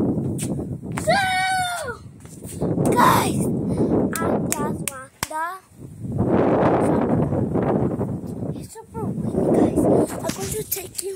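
A young boy speaks excitedly close by.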